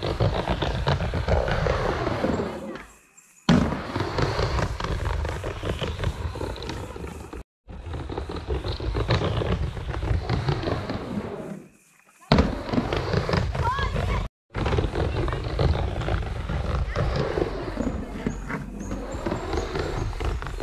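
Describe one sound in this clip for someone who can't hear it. Skateboard wheels roll and rumble on a wooden ramp.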